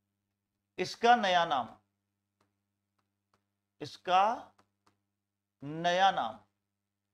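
A man speaks clearly into a close microphone, in short phrases with pauses.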